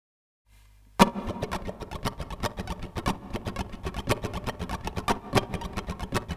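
A ukulele is strummed briskly in a lively rhythm.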